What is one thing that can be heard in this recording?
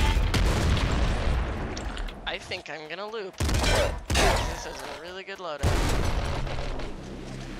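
Video game explosions boom and crackle.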